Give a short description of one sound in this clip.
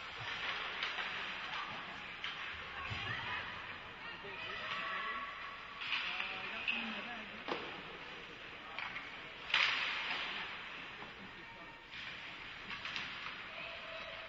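Skates scrape across the ice in a large echoing rink.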